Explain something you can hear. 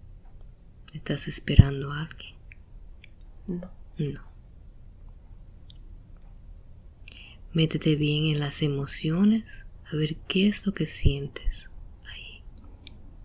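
A young woman mumbles sleepily up close.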